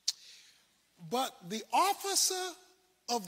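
A man preaches forcefully into a microphone.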